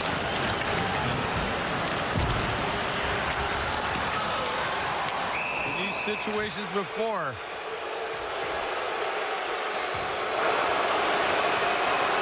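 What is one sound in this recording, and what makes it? A hockey stick strikes the puck.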